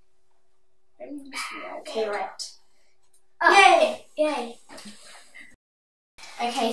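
Young girls talk with animation nearby.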